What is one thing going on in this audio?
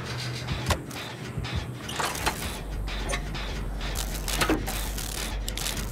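A generator engine rattles and clanks as metal parts are worked on.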